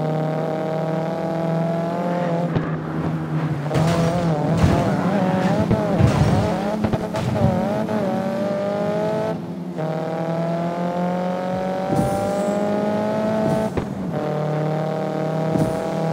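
A car engine roars steadily, its pitch rising as it revs and dropping briefly with each gear change.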